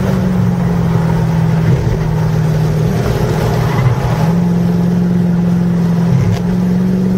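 A car engine roars steadily at high revs from inside the cabin.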